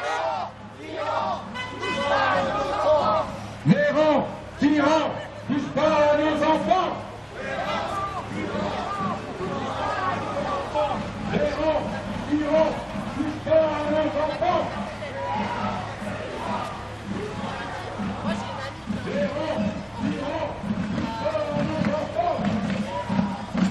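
A crowd of men and women chatter and call out as they walk past outdoors.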